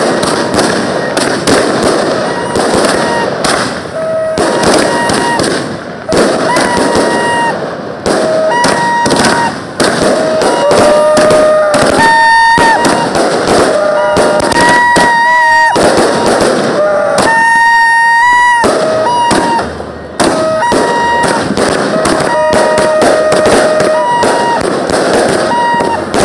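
Fireworks whistle and shriek as they shoot up.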